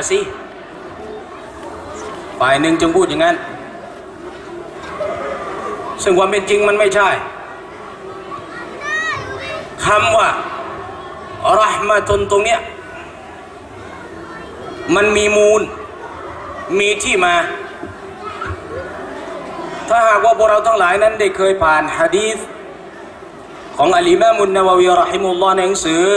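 A middle-aged man speaks with animation into a microphone, in bursts with pauses, heard over a loudspeaker.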